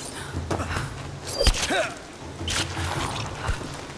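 Heavy thuds sound as two people grapple.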